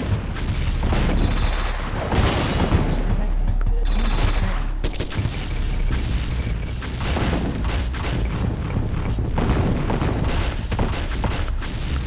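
Explosions boom and crackle repeatedly.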